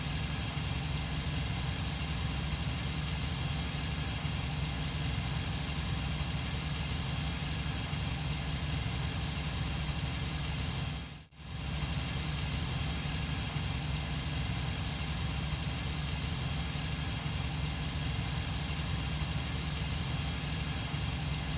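A propeller plane's engine drones loudly and steadily.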